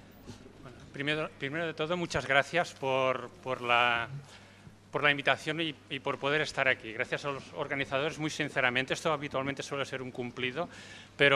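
A man speaks calmly into a microphone over loudspeakers in a large hall.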